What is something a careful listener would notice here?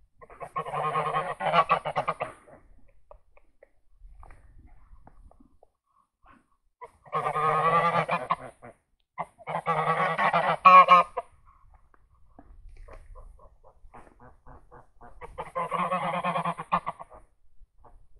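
Geese honk loudly in long bursts, close by.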